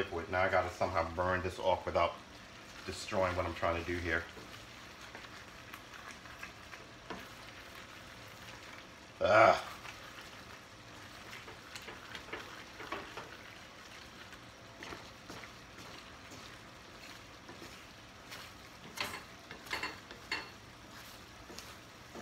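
A wooden spoon scrapes and stirs food in a metal pan.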